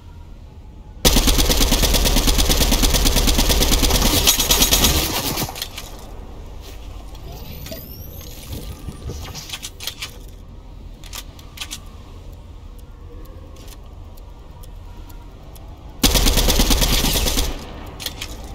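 Rapid gunfire rattles loudly in short bursts.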